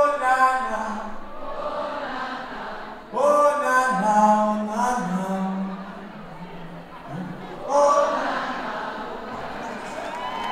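A man sings into a microphone in a large hall.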